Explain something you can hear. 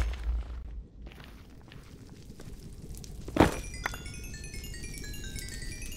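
Fire crackles.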